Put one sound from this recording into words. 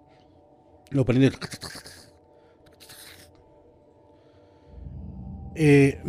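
Another man speaks calmly into a close microphone.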